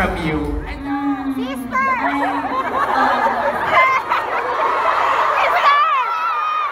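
A young woman speaks calmly into a microphone, heard through loudspeakers in a large echoing hall.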